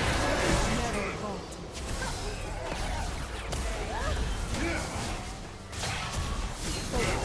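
Game characters' weapons strike with sharp hits.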